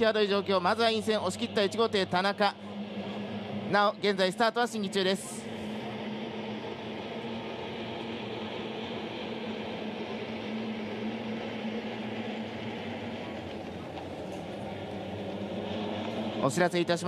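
Racing boat engines roar steadily across the water.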